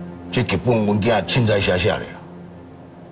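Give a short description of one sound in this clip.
An older man speaks firmly and questioningly, close by.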